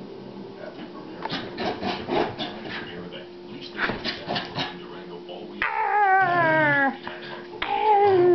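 A small dog growls playfully.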